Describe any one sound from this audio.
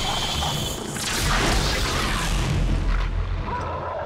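A heavy blow lands with a booming thud.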